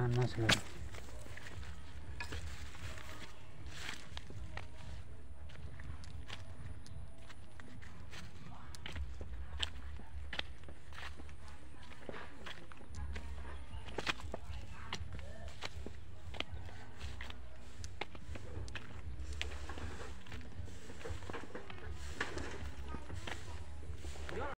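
Footsteps crunch softly on a dirt path.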